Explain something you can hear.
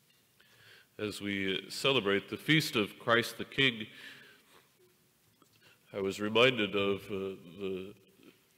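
An older man chants loudly through a microphone in a large echoing hall.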